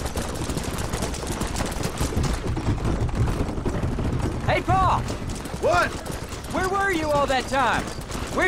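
A horse gallops, its hooves thudding on a dirt road.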